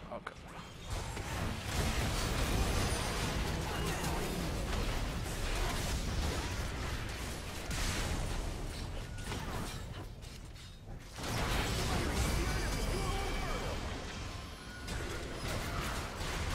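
Magic blasts and hits crackle and boom in a game battle.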